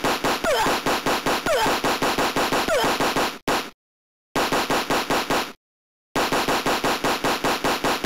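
Electronic video game explosions burst with sharp blasts.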